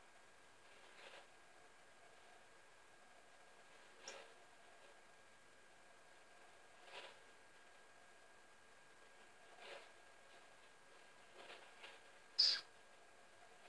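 A small bird gives short, soft chirps now and then, with one sharper call near the end.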